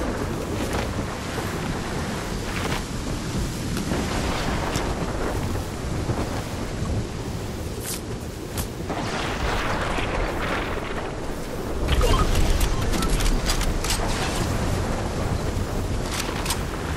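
Quick footsteps patter over grass and hard ground.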